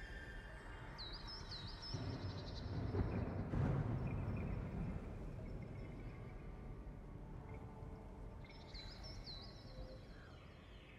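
Short chirping game sound effects ring out in bursts.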